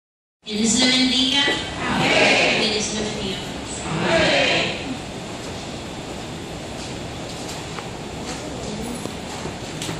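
A young woman speaks with animation into a microphone in a large echoing hall.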